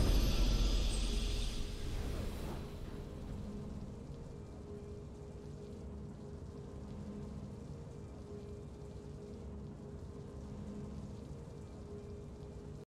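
A triumphant fanfare bursts out loudly and fades into soft, steady music.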